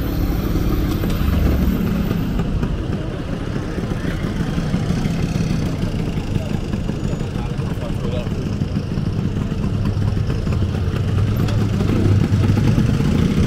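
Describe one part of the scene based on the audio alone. Motor scooters putter past close by.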